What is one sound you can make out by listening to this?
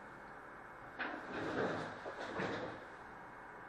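A hand knocks a small plaque against a hard board.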